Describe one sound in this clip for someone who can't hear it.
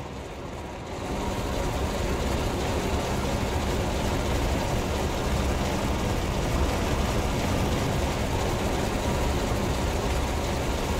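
Sparks hiss and crackle steadily, loud and close.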